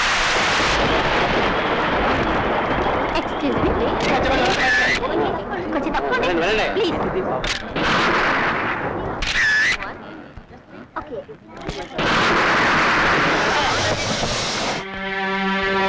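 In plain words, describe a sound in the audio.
A crowd of men and women shout and clamour outdoors.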